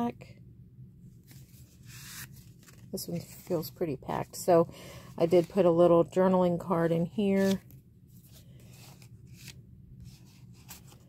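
Paper cards rustle and slide as hands handle them.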